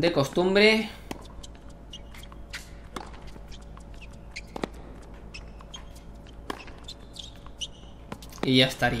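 A tennis ball is struck by a racket.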